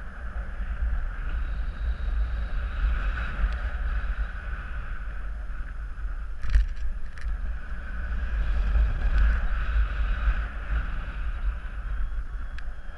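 Strong wind rushes and buffets steadily against a microphone.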